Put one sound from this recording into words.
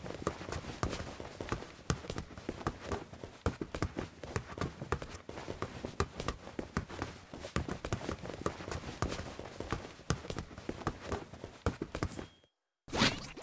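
A ball thumps as it is kicked and bounced again and again.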